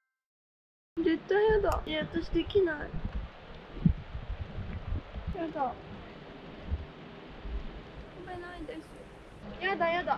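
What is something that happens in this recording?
A young woman speaks close by, pleading and whining.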